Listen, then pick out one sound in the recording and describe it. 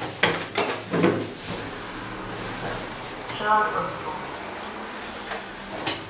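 Lift doors rumble as they slide.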